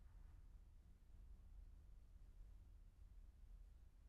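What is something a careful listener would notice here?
A pickup truck engine rumbles as the truck drives slowly away.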